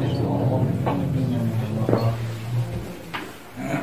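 Cloth rustles close by.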